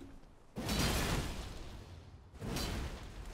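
A magic spell bursts with a bright whooshing blast.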